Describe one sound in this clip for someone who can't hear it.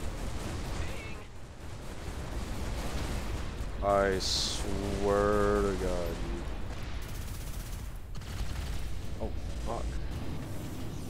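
Blaster shots and explosions boom.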